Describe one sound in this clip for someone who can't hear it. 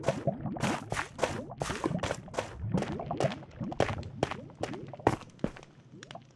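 Footsteps tap quickly across hard ground.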